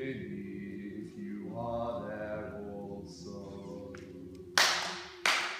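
A group of adults sings softly together.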